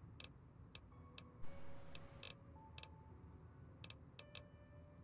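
Short electronic menu clicks tick as a list scrolls.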